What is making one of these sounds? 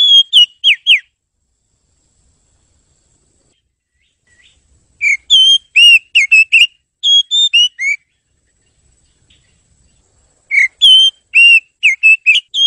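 A songbird sings clear, whistled phrases in short bursts, close by.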